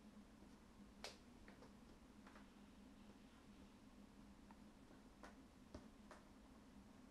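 Plastic game pieces click softly as a hand moves them on a table.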